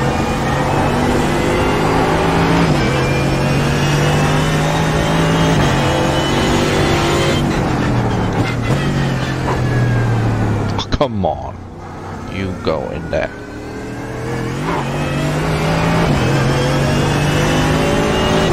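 A racing car engine roars loudly, revving up through the gears and dropping for braking.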